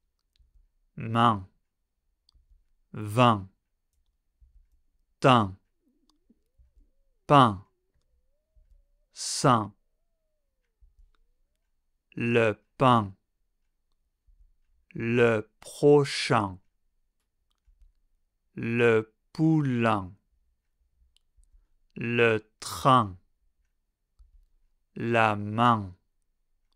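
A man pronounces single words clearly and slowly into a close microphone, with pauses between them.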